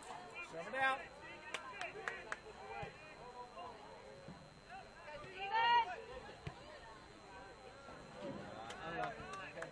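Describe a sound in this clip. Young players shout and call out to each other across an open field outdoors.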